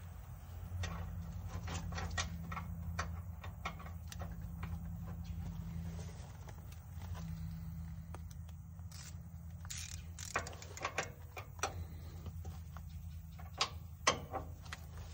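Metal tools clink and tap against metal.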